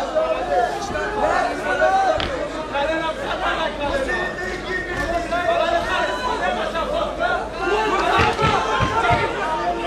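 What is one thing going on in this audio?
A crowd of men and women shouts and cheers loudly around the fighters.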